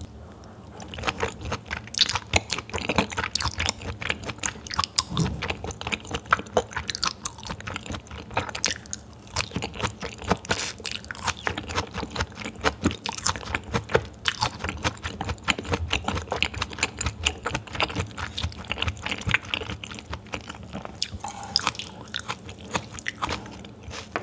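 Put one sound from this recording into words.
A young woman chews raw beef with wet, sticky mouth sounds, close to a microphone.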